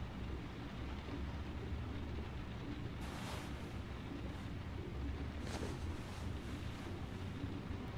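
Bedding rustles softly as a man shifts on a bed.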